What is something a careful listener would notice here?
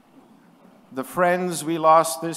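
An older man speaks calmly into a microphone, heard over loudspeakers in a large hall.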